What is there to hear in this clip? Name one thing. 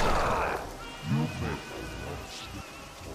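A young man talks into a microphone close by.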